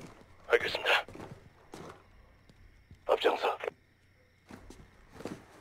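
Boots step softly on a hard floor.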